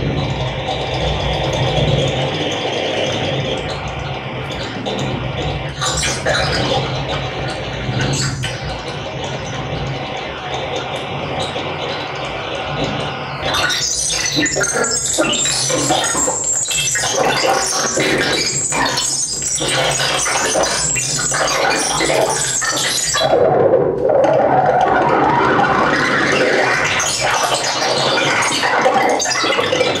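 Electronic music plays loudly through loudspeakers in a room.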